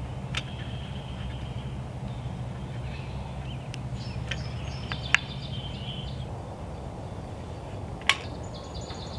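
A plastic clamp clicks and snaps as it is adjusted by hand.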